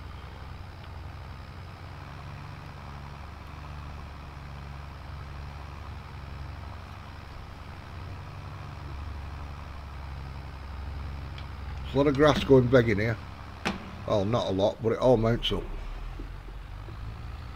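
A tractor engine rumbles steadily at low revs.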